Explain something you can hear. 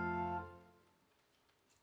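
A choir sings, holding a final note that fades out.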